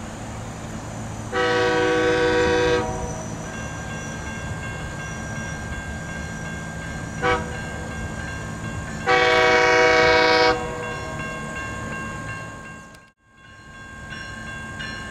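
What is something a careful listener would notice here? A diesel locomotive rumbles as it approaches.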